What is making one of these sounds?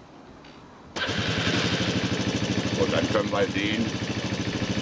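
A scooter engine starts and idles with a steady putter.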